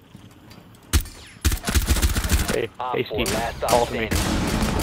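Rapid gunshots fire loudly in bursts.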